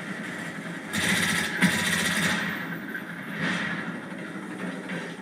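Rapid gunfire rattles from an automatic rifle.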